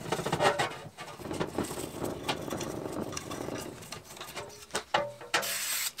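A small brush scrubs against metal.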